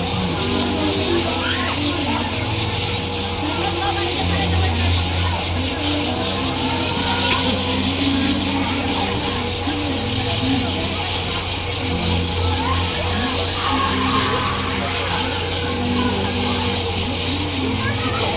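Riders scream now and then.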